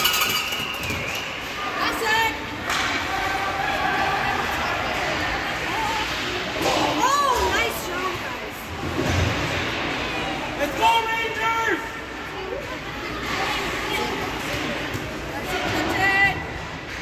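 Young players and spectators shout and call out in a large echoing rink.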